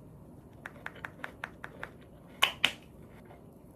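A watch strap clicks as it is fastened.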